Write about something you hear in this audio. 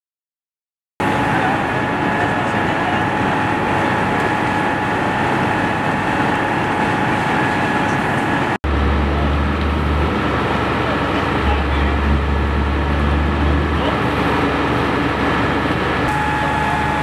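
Flames roar inside a burning garage.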